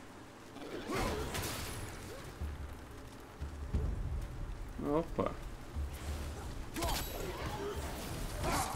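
Heavy blows and crashes of a fight ring out with a deep rumble.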